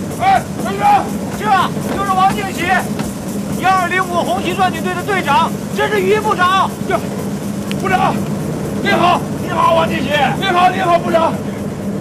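A middle-aged man talks cheerfully and with animation, close by.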